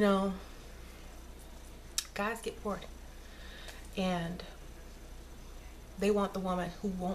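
A woman speaks calmly and close to a microphone, in short bursts.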